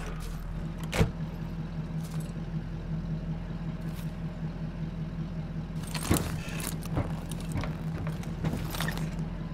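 Metal clanks as people climb into a vehicle.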